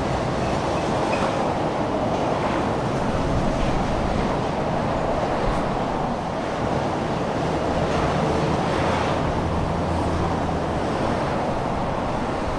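A car engine hums steadily from inside while driving.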